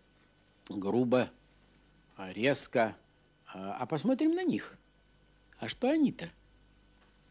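An elderly man speaks calmly and slowly, in short phrases.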